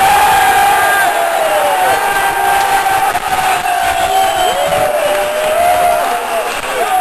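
A large crowd sings together loudly.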